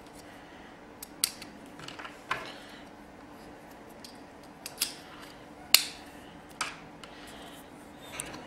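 Small plastic parts click and snap as fingers handle a connector.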